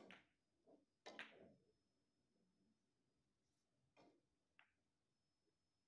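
Billiard balls click against each other and knock off the cushions.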